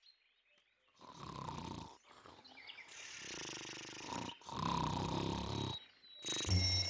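A bear snores loudly.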